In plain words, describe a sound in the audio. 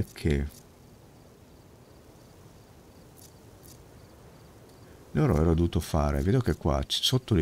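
An older man talks with animation close to a microphone.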